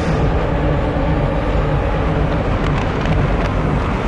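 Racing car engines roar as a pack of cars accelerates.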